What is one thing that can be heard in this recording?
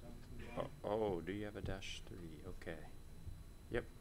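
A young man speaks briefly over a microphone.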